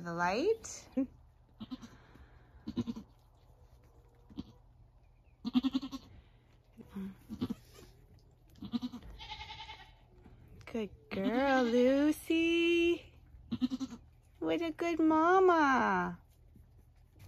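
A goat bleats loudly, in long wavering cries.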